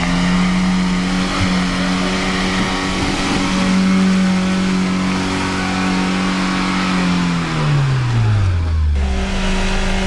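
An engine strains as a vehicle climbs through mud, then winds down.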